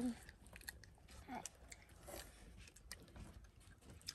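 A stick scrapes and crunches through honeycomb.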